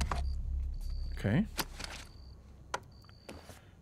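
A pistol magazine clicks against a hard surface.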